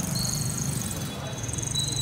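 A motorbike engine hums as it rides past.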